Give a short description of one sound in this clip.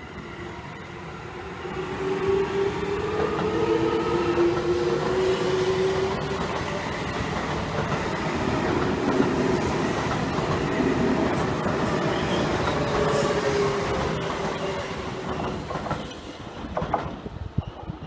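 An electric train rumbles past close by on the rails.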